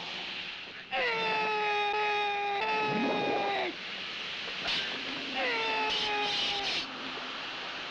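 A man lets out loud, drawn-out battle cries.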